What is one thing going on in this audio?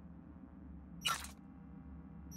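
A game menu confirms a choice with a short, bright whoosh.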